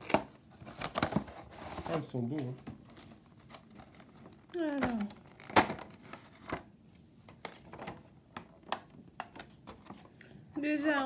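A plastic package crinkles and clicks.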